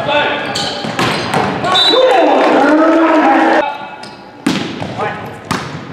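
A volleyball is spiked with a sharp smack in a large echoing gym.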